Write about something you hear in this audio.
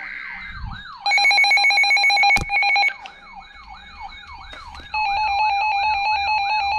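A weather alert receiver gives off loud, rapid, high electronic beeps.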